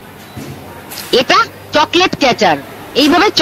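A woman speaks loudly and excitedly close by.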